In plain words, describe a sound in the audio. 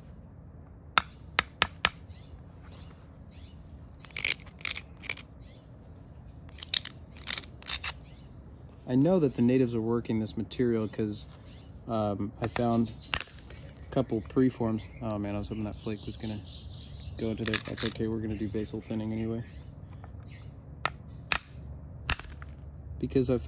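Stone chips off with sharp clicks as it is pressed with an antler tool.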